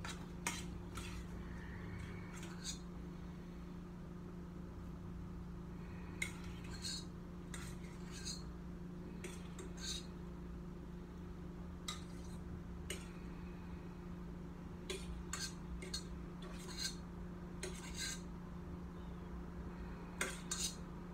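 Metal utensils clink against a metal pot.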